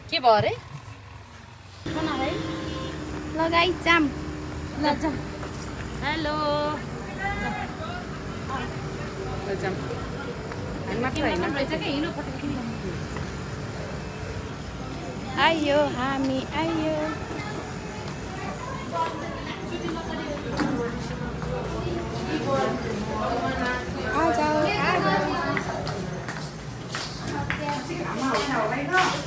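Young women talk and chatter close by.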